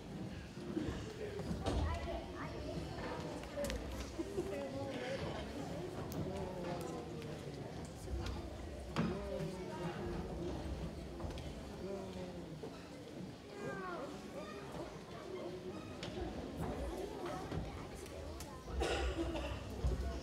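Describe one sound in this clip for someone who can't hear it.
A children's choir sings together in a large echoing hall.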